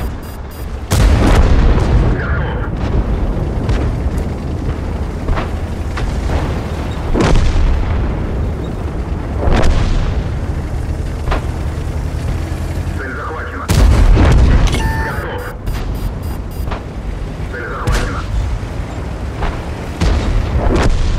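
Tank guns fire with loud booming blasts.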